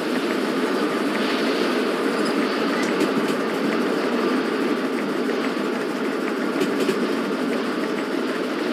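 A steam locomotive rumbles steadily along the tracks.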